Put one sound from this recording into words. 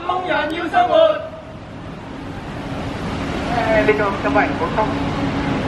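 An older woman speaks loudly and firmly into a microphone, outdoors.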